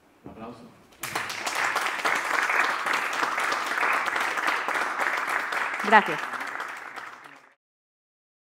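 An audience applauds loudly in a large hall, then the clapping fades out.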